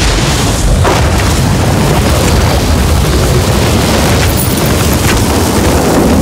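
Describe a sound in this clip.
Electric magic crackles and sizzles loudly.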